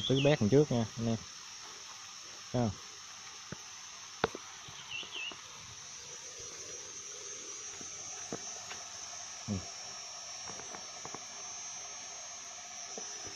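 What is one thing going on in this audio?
A water sprinkler hisses steadily as it sprays.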